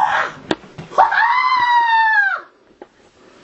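A teenage boy cries out in a long, wavering yell.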